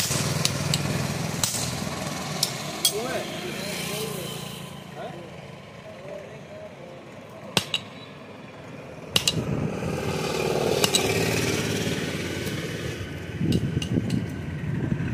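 Metal clinks sharply as a blade is struck on an anvil.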